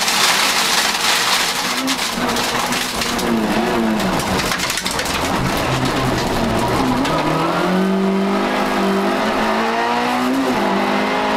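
A car engine revs hard, rising and falling in pitch, heard from inside the car.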